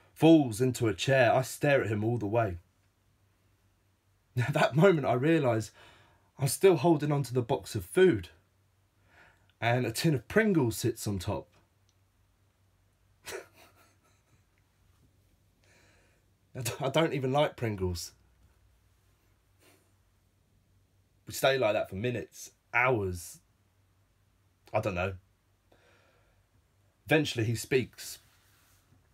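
A man talks calmly and with animation, close to a microphone, in short bursts with pauses.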